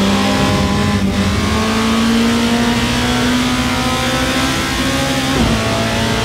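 A racing car engine briefly drops in pitch as the gears shift.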